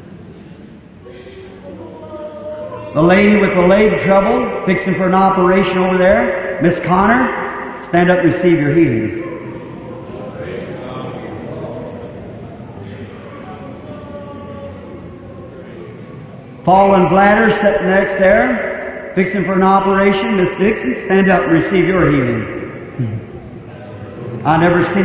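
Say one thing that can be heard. A man preaches with animation into a microphone, in bursts of loud, rising speech.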